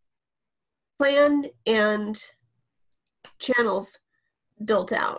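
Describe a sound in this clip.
A young woman speaks calmly and close to a microphone, in short phrases.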